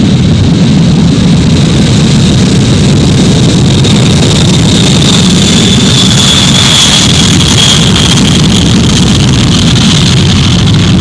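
A high engine whine grows louder as the aircraft passes close by.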